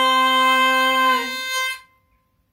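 A young woman sings a long held note.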